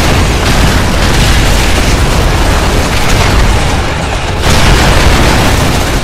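Guns fire rapidly.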